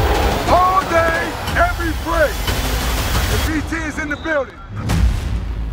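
A crowd of young men shouts and cheers loudly.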